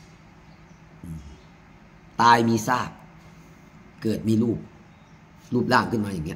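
A middle-aged man speaks calmly and close up, in short phrases with pauses.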